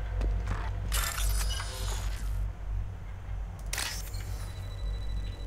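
Electronic beeps and chirps sound from a hacking console.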